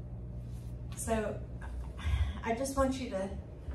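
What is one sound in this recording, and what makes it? A woman speaks calmly into a microphone in an echoing room.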